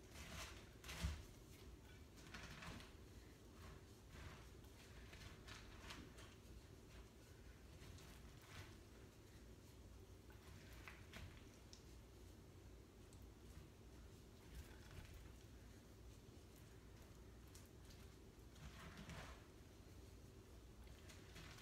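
A spoon stirs a thick, sticky mixture in a bowl with soft, squelching scrapes.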